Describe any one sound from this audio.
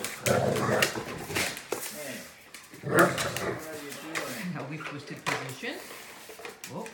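Large dogs growl and grunt as they play roughly.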